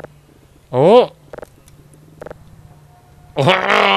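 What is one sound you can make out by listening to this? Wooden panels flip over on a post with hollow clunks.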